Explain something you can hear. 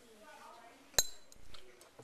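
A metal clamp clicks sharply against a stand.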